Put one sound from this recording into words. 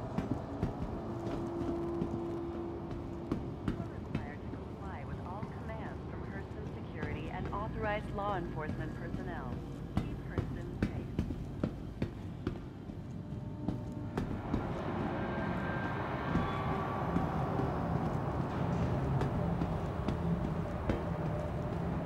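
Footsteps tap steadily on a hard metal floor.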